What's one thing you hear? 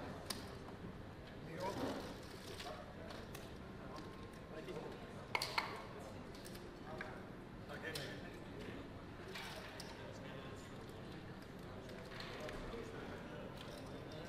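Casino chips clack together.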